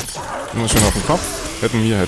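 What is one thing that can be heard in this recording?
A weapon strikes a creature with heavy thuds.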